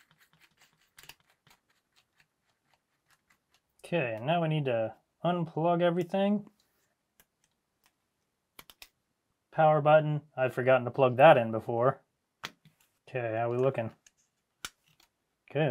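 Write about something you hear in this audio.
Small plastic parts click softly as fingers handle them.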